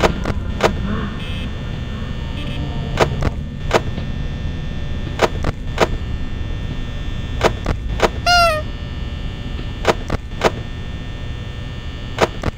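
A desk fan whirs steadily.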